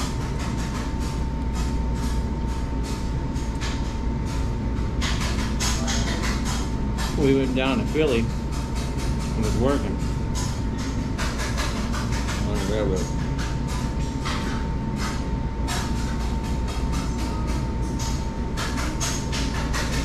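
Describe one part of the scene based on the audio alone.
A man chews and eats noisily.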